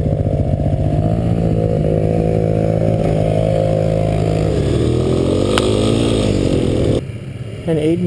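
A quad bike engine revs loudly nearby.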